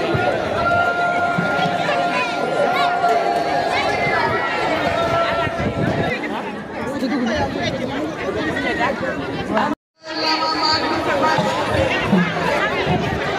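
A large crowd of women chatters and calls out outdoors.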